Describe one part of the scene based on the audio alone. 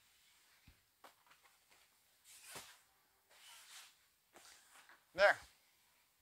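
Seat cushions thump and rustle as they are pushed into place.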